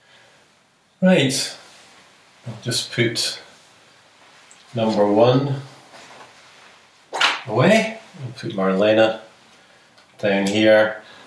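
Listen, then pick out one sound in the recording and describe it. An older man speaks calmly and clearly, close to a microphone.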